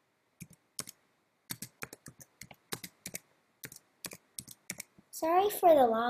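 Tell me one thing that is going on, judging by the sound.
Keys clack quickly on a keyboard.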